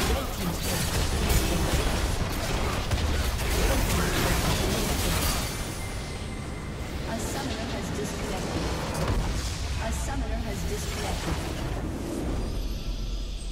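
Spell effects crackle and blast in a fast, noisy fight.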